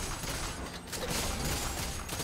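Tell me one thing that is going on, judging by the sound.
A fiery blast bursts.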